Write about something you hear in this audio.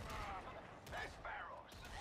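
A weapon fires with a loud blast.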